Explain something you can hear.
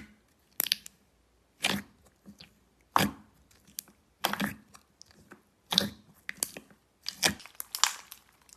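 Fingers poke and squish wet slime with sharp popping clicks.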